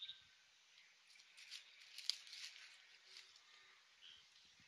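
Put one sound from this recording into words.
A small dog rustles through dry leaves close by.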